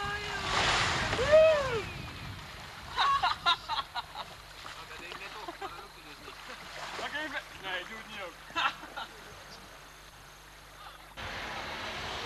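River water rushes and splashes.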